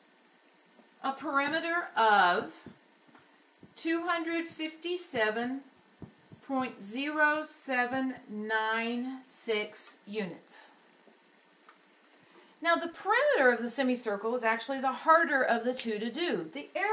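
A woman explains calmly, close by.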